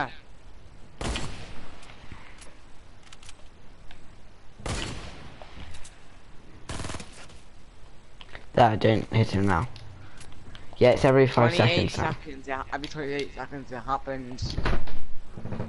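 A gun fires single loud shots.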